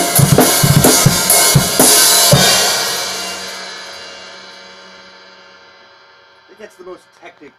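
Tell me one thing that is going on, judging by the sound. Drums and cymbals crash loudly, then a cymbal rings out and slowly fades.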